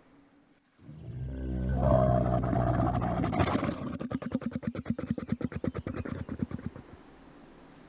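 A camel groans and grumbles loudly up close.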